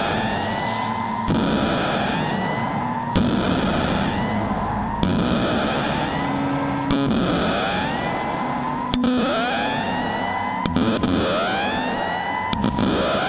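Electronic synthesizer music plays, with rising swept tones over a noisy wash.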